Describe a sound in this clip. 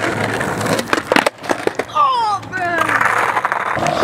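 A skateboard clatters on asphalt.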